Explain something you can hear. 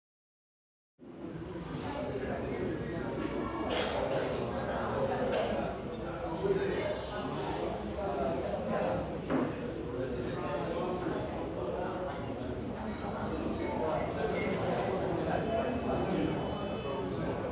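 Men and women talk quietly and murmur in a room.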